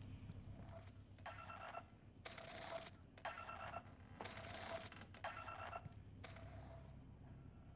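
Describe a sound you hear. An electronic scanner beeps in short repeated bursts.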